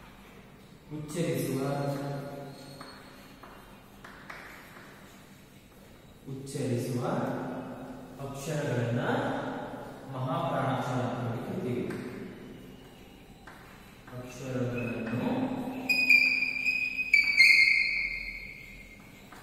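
A young man speaks slowly and clearly, like a teacher explaining, in a room with some echo.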